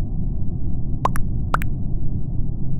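A short notification chime sounds twice.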